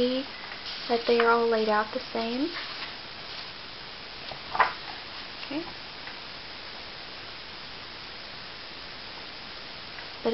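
Paper pages rustle softly as a book's pages are turned by hand.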